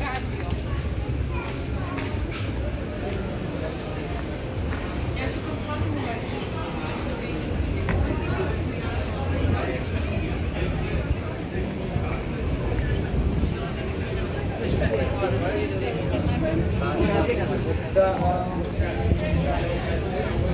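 Footsteps patter on stone paving.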